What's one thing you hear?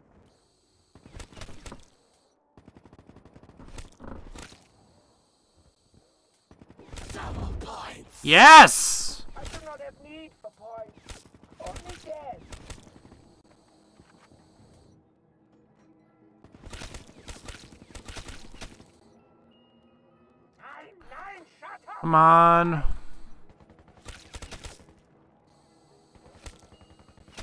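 Gunshots rattle in quick bursts.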